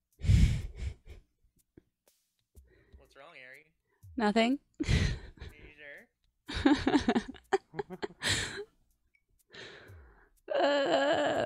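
A young woman talks animatedly into a nearby microphone.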